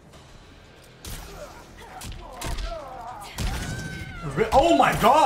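Punches and kicks land with heavy thuds in a fighting game.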